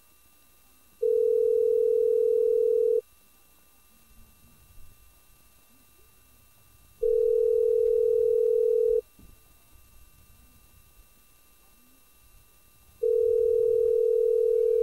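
A phone call rings out with a steady tone that repeats every few seconds.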